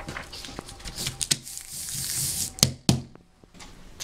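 A sheet of paper is pressed and taped against a wall.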